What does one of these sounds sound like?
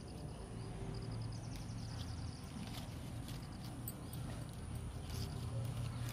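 Leaves rustle as a hand picks beans from a vine.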